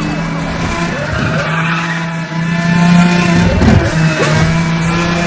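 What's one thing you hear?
Tyres hiss and rumble on the road.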